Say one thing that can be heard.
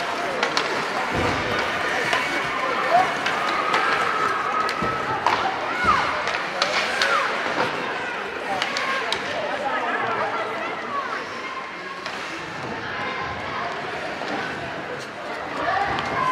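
Hockey sticks clack against the puck and each other.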